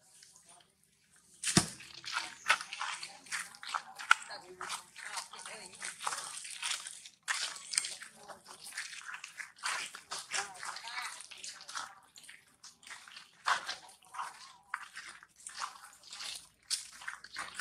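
Small monkeys patter and scuff over dry leaves and gravel.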